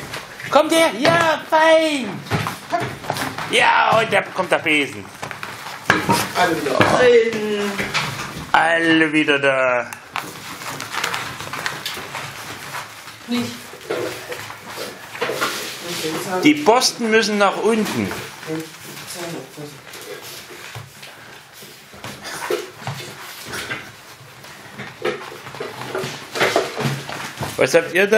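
Puppy paws patter on a wooden floor.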